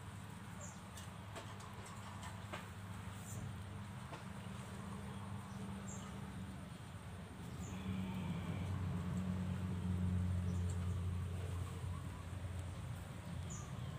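Straw rustles faintly as newborn rabbits shift in their nest.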